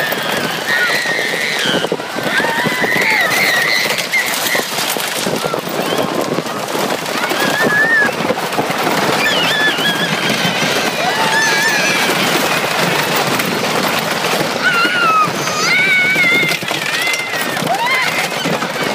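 A roller coaster rattles along its track.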